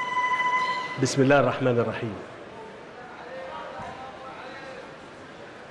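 A man speaks calmly into a microphone over loudspeakers.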